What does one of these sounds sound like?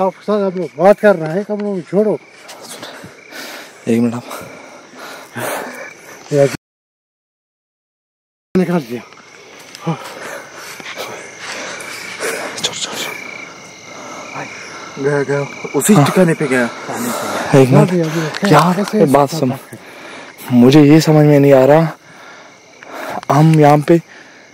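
Men talk with animation close to a microphone.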